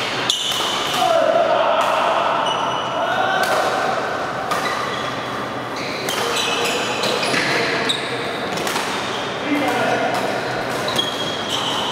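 Sports shoes squeak sharply on the court floor.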